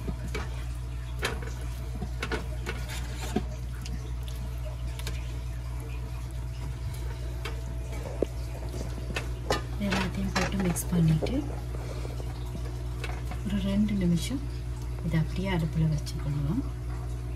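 A spatula scrapes and clicks against a frying pan.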